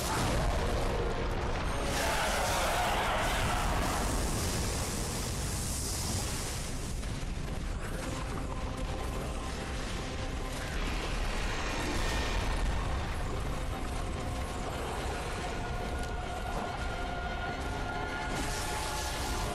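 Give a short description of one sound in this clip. Swords and spells crash loudly in a fierce fight.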